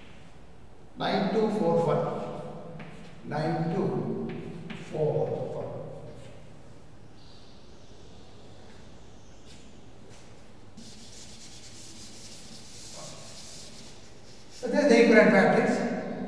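An elderly man speaks calmly into a microphone, explaining.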